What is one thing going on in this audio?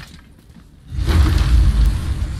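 A heavy door grinds open.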